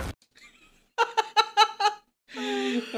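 A young man laughs loudly in bursts.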